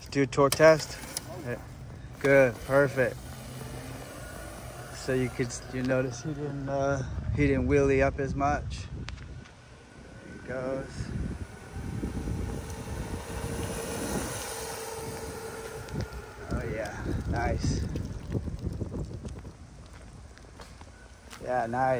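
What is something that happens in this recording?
Small tyres roll on asphalt.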